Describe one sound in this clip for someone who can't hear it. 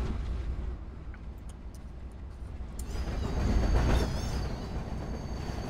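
A passenger train rumbles along the rails.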